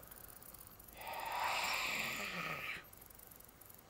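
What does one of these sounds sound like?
An electronic device buzzes and crackles.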